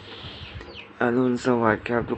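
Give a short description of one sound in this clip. A young man speaks softly and drowsily close by.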